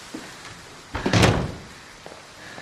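A wooden door thuds shut.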